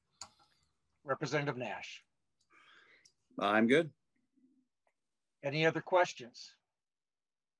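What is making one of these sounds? An older man speaks calmly over an online call.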